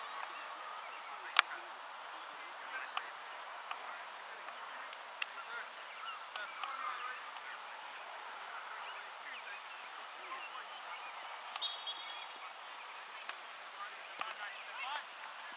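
Distant players shout across an open field outdoors.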